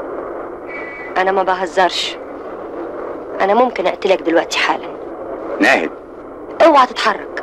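A woman speaks tensely.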